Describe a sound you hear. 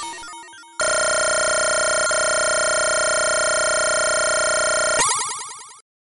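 A video game's bonus points tally up with a steady, rapid electronic buzzing.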